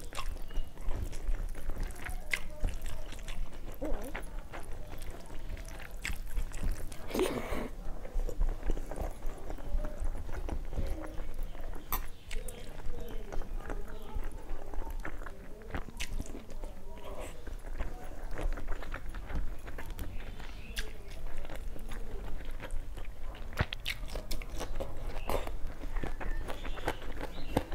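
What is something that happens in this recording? Fingers squish and mix rice on a steel plate.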